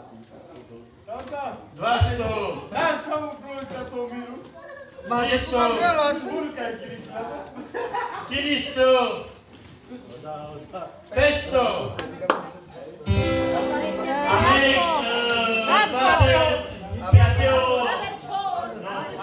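Several men talk with animation close by in a room.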